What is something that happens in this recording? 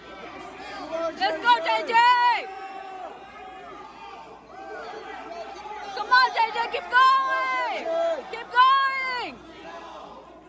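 Young men shout loudly from the sidelines of a large echoing hall.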